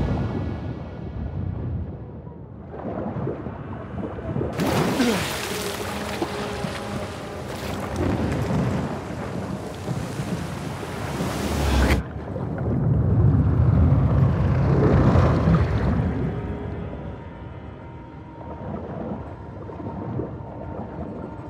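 Water rumbles and bubbles, heard muffled from underwater.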